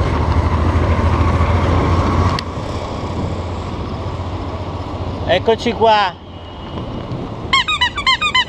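A motorcycle engine hums nearby.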